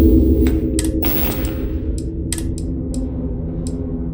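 Short soft clicks tick as a menu is scrolled.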